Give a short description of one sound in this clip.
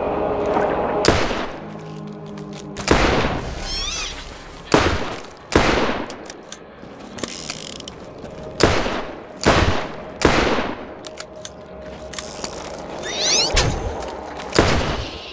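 Pistol shots ring out in sharp bursts.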